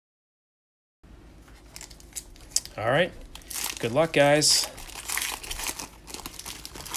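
A foil card wrapper crinkles and tears open.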